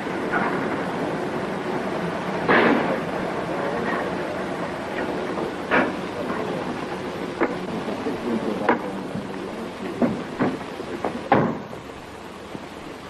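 A car engine rumbles.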